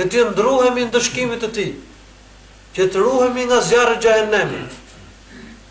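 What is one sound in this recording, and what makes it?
A man speaks with animation into a microphone in an echoing room.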